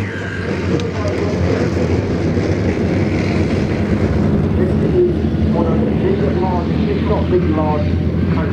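A tank engine rumbles steadily as the tank drives over dirt.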